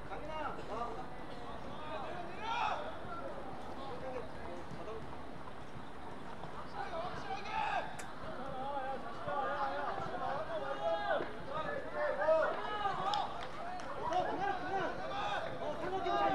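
Young male players shout to each other across an open outdoor pitch.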